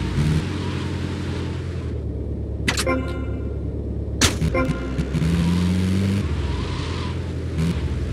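A vehicle engine rumbles steadily and revs up.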